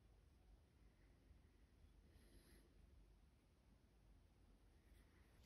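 A wood lathe spins with a low hum.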